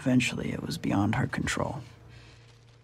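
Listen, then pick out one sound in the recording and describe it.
A man speaks softly close by.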